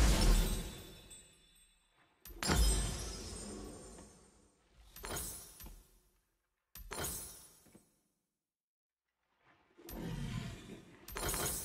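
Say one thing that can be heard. Short coin-like chimes ring out several times as items are bought.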